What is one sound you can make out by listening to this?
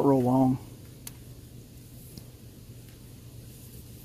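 A pocketknife blade clicks as it opens.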